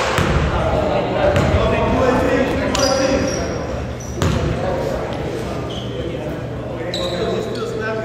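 Players' voices call out in a large echoing gym.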